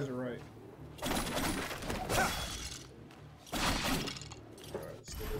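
Game sword slashes whoosh and clash.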